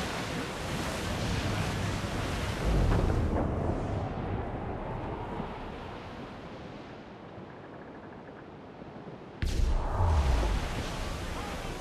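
Waves crash against a wooden sailing ship's bow.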